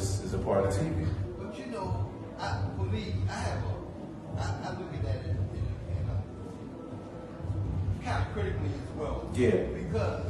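A man speaks calmly to an audience through a microphone and loudspeakers in a room with some echo.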